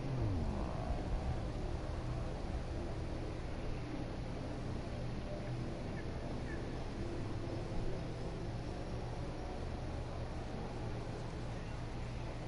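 A hoverbike's engine hums steadily.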